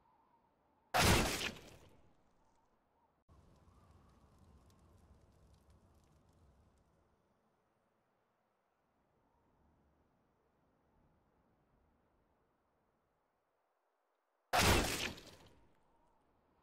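A knife is drawn with a sharp metallic swish.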